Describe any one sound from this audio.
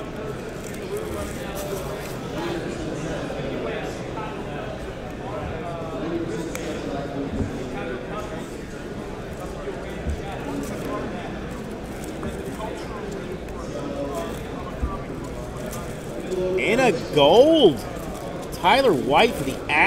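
Trading cards rustle and slide as hands flip through them.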